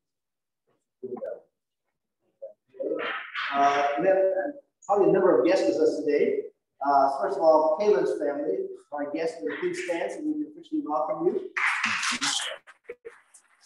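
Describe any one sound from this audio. An adult man speaks through a microphone in a large echoing hall, reading out calmly.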